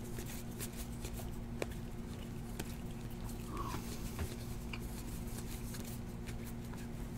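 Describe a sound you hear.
Trading cards rustle and flick as hands shuffle through a stack.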